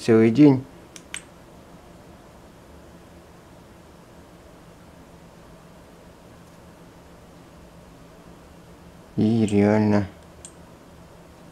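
Fingers click the buttons of a small device.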